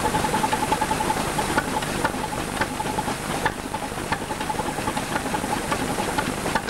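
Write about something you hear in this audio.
An old stationary engine chugs steadily with rhythmic firing beats.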